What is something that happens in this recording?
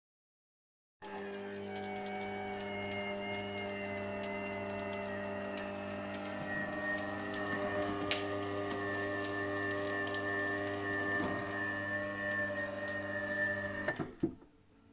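An electric press motor hums steadily.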